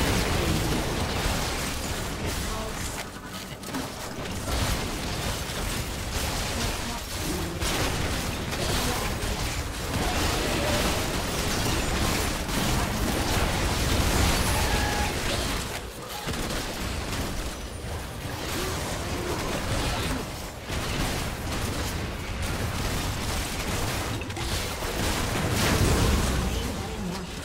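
Magic blasts and hits crackle and boom in a fast fight.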